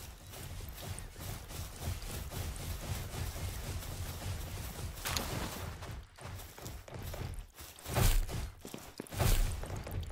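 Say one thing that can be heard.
Footsteps patter on grass and rock.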